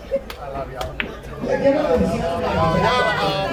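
Pool balls knock together on a table.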